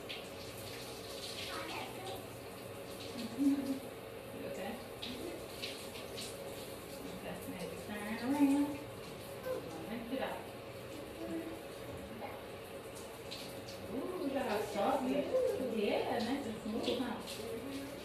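A woman talks to a young girl up close.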